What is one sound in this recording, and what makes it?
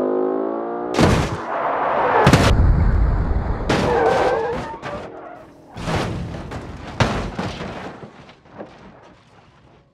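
A car slams into a wall with loud crunching metal.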